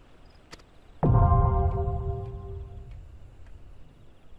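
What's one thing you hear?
A deep, ringing chime sounds suddenly and slowly fades.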